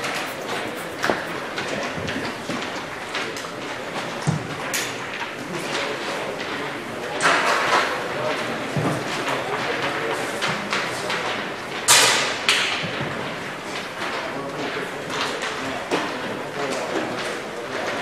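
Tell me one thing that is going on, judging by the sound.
Football players shout to one another in the distance, outdoors.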